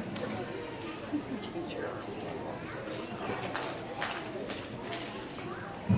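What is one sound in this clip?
A large children's choir sings together, heard from across an echoing hall.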